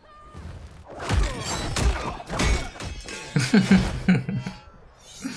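Fighters land heavy blows and thuds.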